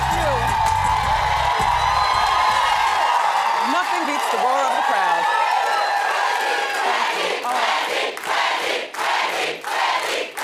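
A large crowd claps.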